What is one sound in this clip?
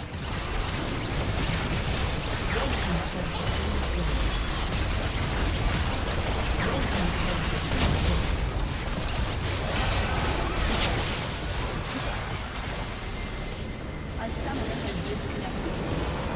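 Game spells and attacks crackle and clash in a busy fight.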